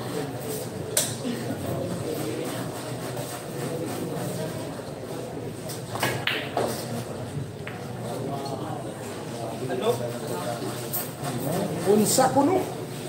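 Pool balls click sharply as a cue strikes them.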